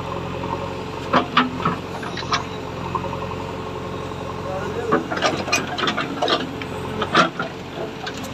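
Soil and roots crunch and snap under a digging bucket.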